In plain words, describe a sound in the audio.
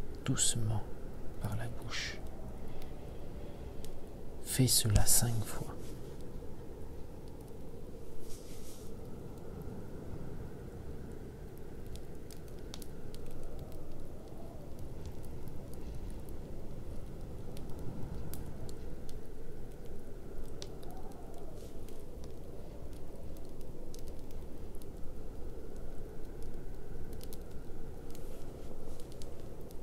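A fire roars softly with a low rush of flames.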